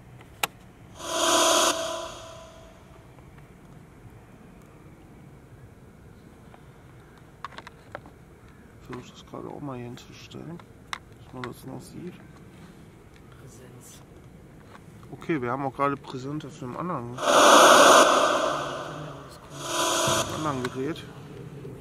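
A portable radio hisses with bursts of static.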